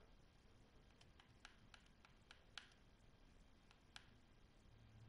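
Soft menu clicks tick several times in quick succession.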